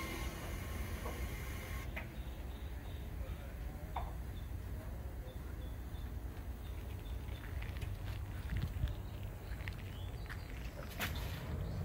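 Footsteps thud on a wooden dock.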